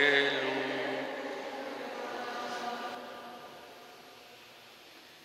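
A long echo rings on and fades after the chanting.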